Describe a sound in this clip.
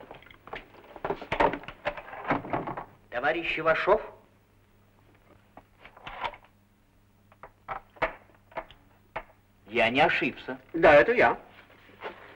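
A man speaks gruffly from behind a door.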